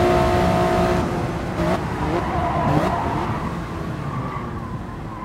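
A racing car engine drops off and crackles as the car brakes hard.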